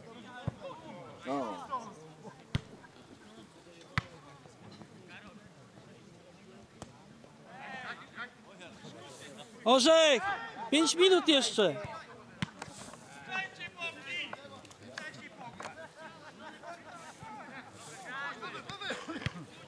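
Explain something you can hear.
Young men shout to each other from a distance across an open field.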